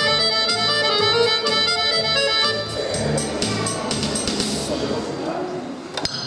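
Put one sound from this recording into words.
An accordion and an electric keyboard play a tune together.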